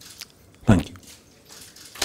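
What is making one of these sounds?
A man speaks into a microphone, close up.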